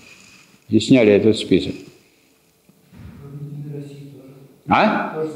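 A man lectures calmly, speaking in short phrases.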